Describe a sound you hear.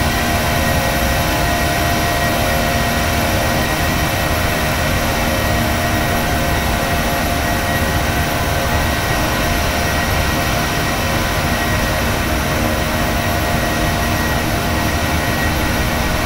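Jet engines roar steadily as an airliner flies.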